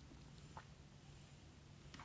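A pen tip scratches lightly on paper.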